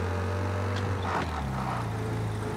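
An old car engine drops in pitch as the gear shifts.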